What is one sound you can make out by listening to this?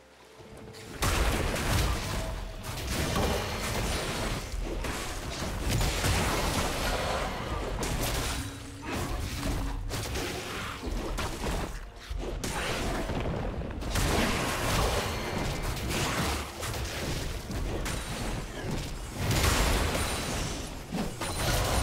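Game spell effects whoosh and crackle as a character fights a monster.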